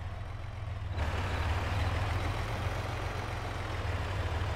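A trailer conveyor belt whirs and rattles.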